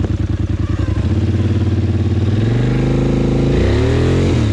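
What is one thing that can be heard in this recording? An all-terrain vehicle engine revs up and pulls away.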